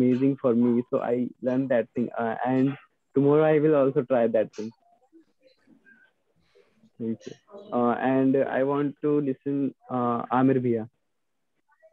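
A young man talks calmly and cheerfully over an online call.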